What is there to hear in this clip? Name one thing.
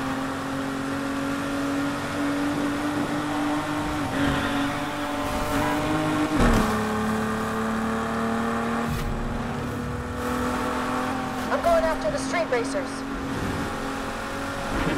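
A car engine hums steadily and shifts gears as it speeds up.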